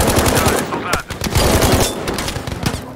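A rifle fires rapid bursts of automatic gunfire.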